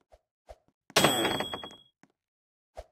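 A bright chime rings out as a reward is given.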